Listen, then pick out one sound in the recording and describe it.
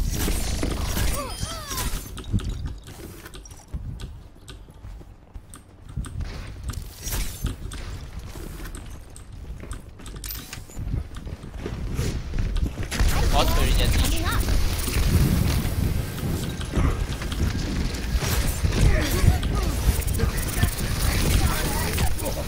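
A game weapon fires in rapid blasts.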